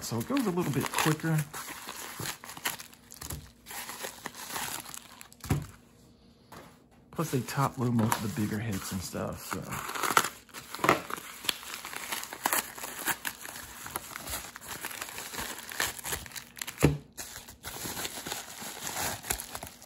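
A padded paper envelope crinkles and rustles in hands.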